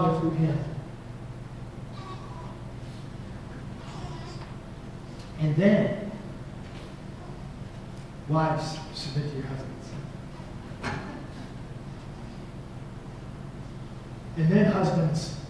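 A man speaks calmly through a microphone in a large echoing room, with long pauses.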